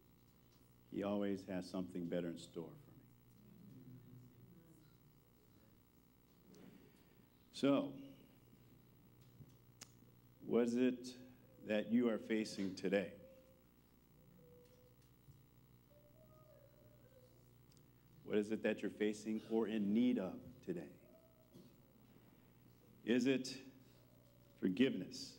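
A man speaks calmly through a microphone in a reverberant hall, pausing between phrases.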